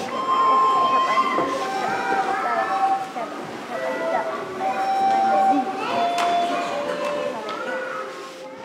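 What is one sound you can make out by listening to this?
A child plays a simple tune on a wooden recorder.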